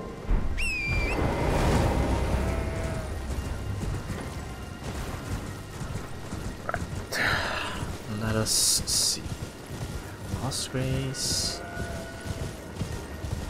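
A horse gallops with steady thudding hooves.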